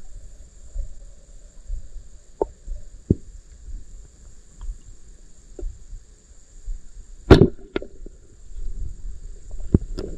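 Water rumbles and burbles, muffled, underwater.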